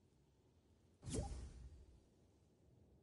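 A short game notification sound plays.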